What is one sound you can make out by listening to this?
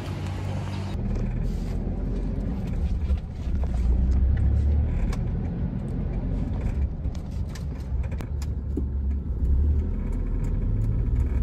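A car's engine rumbles steadily from inside the cabin.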